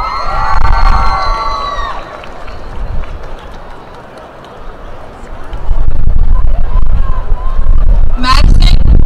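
An outdoor crowd applauds.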